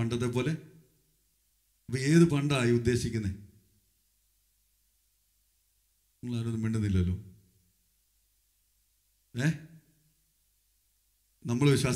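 A man speaks through a microphone with animation, in short bursts with pauses.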